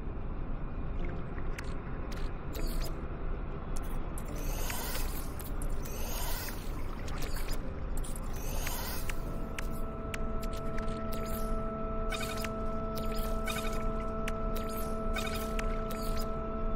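Short game menu clicks and blips sound as selections change.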